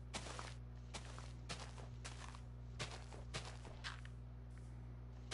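Shovel digging into dirt crunches in quick, repeated bursts.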